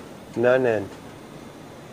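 A man asks a short question close by.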